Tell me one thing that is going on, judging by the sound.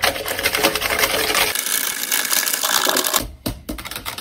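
A lemon squeaks and grinds on a hand juicer.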